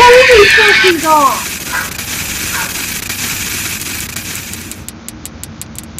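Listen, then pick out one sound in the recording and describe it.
Loud static hisses.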